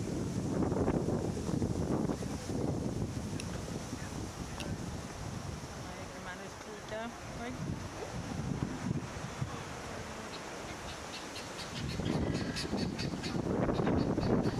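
Wind gusts outdoors and rumbles against the microphone.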